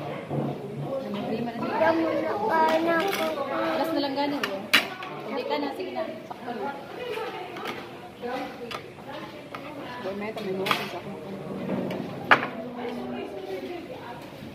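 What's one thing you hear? A young woman talks casually up close.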